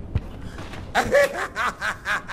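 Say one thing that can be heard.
A man speaks gruffly nearby.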